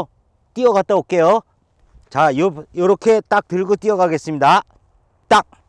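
A man talks close to the microphone with animation.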